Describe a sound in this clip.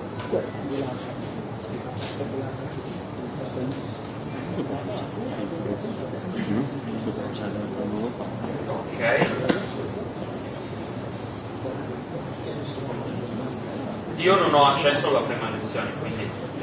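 A young man speaks calmly through a microphone in an echoing hall.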